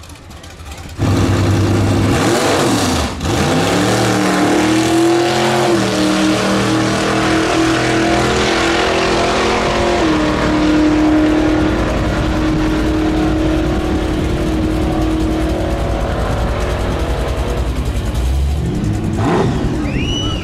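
A car engine roars loudly as it launches and accelerates away, rising and falling in pitch through the gears.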